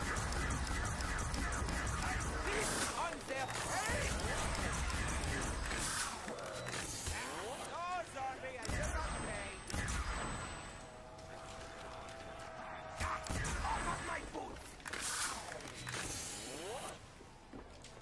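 A ray gun fires with sharp electronic zaps.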